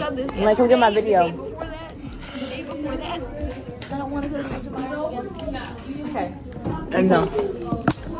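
A girl talks with animation close to a phone microphone.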